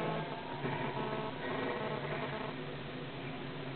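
Magic blasts crackle and burst in a video game.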